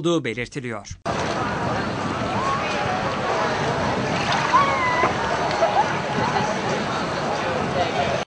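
Many people chatter and call out in the distance, outdoors.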